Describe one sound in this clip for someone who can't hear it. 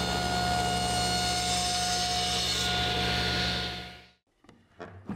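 A machine hums loudly and steadily.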